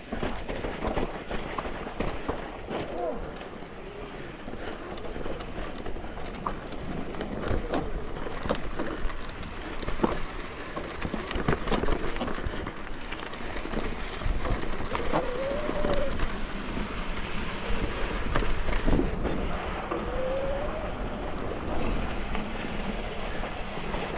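Bicycle tyres rumble and crunch over rocks and dirt.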